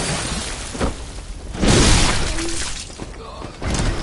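A blade strikes a creature with heavy, wet hits.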